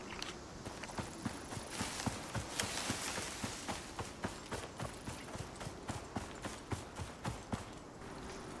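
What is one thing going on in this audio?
Footsteps rustle through tall grass at a steady walking pace.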